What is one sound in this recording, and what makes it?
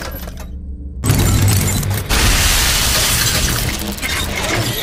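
A loud, harsh mechanical screech blares as a robotic figure lunges close.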